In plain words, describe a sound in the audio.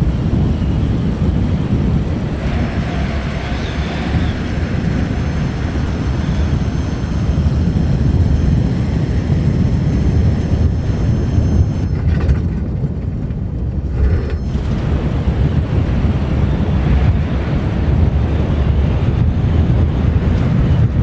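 A small propeller plane's engine drones steadily in flight.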